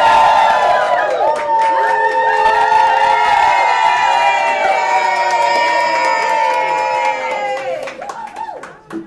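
A crowd cheers and whoops loudly.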